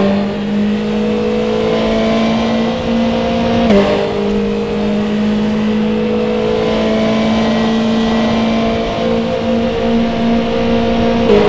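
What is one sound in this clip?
A racing car engine roars at a high, steady pitch.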